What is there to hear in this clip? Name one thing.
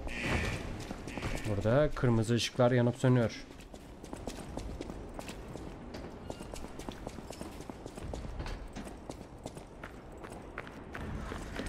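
Footsteps scrape on a stone floor.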